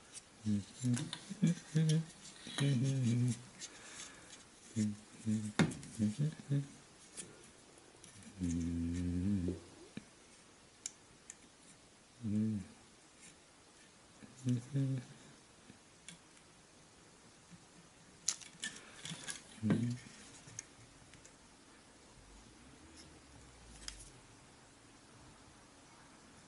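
Small wooden pieces click and tap softly as they are handled.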